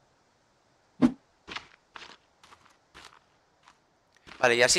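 Short knocks and thuds sound, one after another.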